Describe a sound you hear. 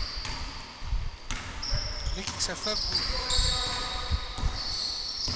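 A basketball bounces with dull thuds on a wooden floor in an echoing hall.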